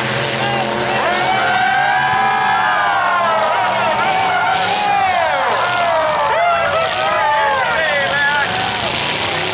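A large crowd cheers and shouts in the distance.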